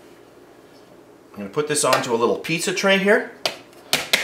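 A metal cake pan is set down onto a metal tray.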